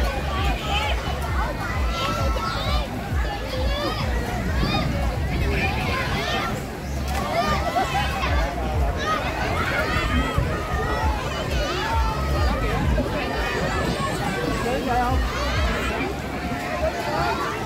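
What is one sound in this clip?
People splash in water.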